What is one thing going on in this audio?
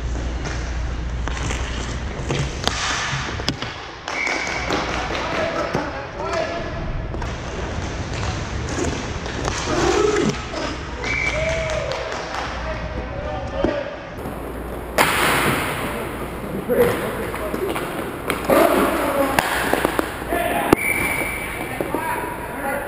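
Hockey sticks click and clack against a ball.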